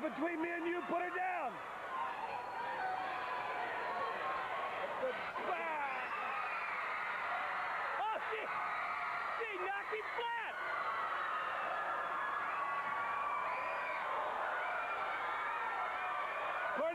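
A man shouts angrily nearby.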